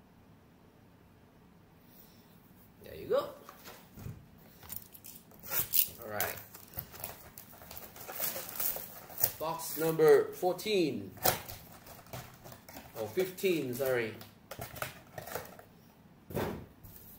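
A cardboard box slides and taps against a hard surface.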